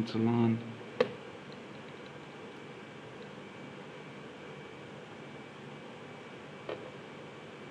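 A plastic ruler taps against a desk.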